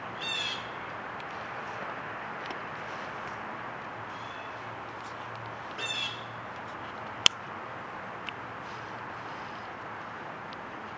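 A small animal rustles and chews bamboo leaves close by.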